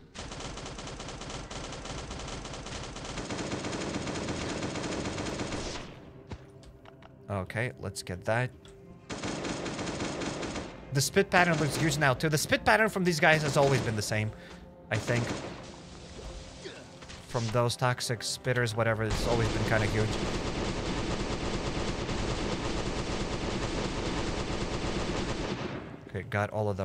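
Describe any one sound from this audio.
Weapons strike and thud in a video game fight.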